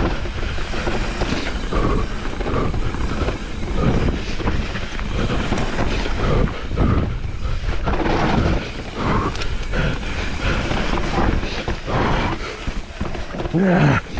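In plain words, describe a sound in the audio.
Wind buffets outdoors, rushing past steadily.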